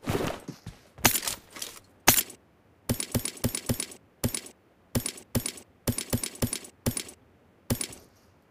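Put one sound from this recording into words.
Short clicking pickup sounds come in quick bursts.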